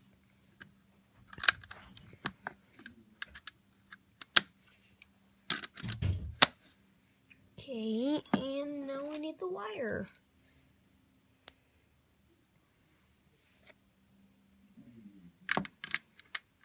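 Plastic circuit parts click as they are snapped into place.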